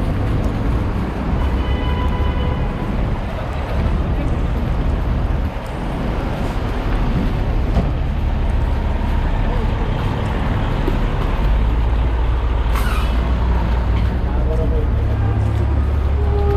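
A fire engine's diesel motor idles with a deep, steady rumble.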